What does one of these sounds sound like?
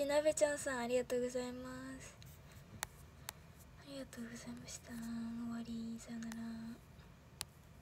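A young woman speaks close to a microphone in a high, sing-song voice.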